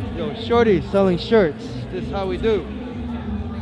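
A young man shouts loudly with excitement.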